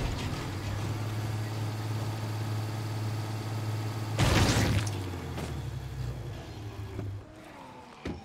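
A truck engine idles with a low steady hum, then stops.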